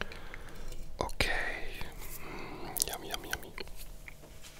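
A young man speaks softly close to a microphone.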